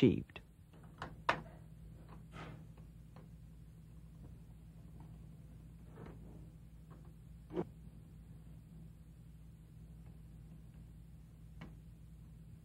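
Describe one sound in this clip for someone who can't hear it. A pasta machine clicks and rattles as dough is fed through its rollers.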